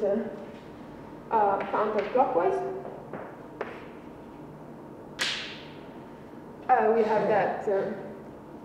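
A young woman speaks calmly in an echoing room.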